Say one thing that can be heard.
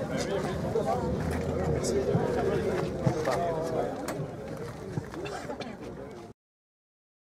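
A crowd of adult men chatter nearby outdoors.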